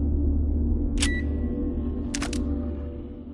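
A metal mechanism clicks sharply.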